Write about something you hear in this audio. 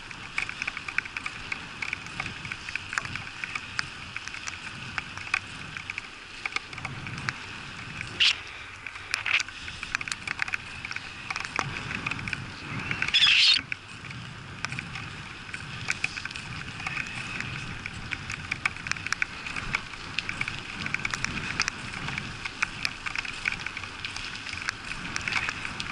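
Raindrops tap and crackle close by.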